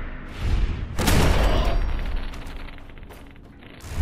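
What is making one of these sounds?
A metal machine explodes with a booming blast.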